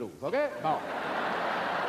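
Someone in a crowd whistles shrilly.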